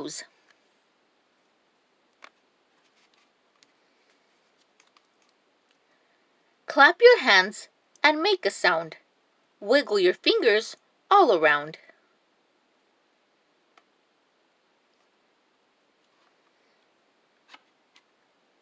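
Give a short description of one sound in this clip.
A stiff cardboard page flips over.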